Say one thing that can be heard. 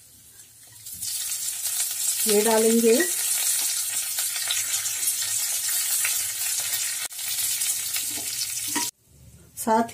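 Oil sizzles loudly in a hot pan.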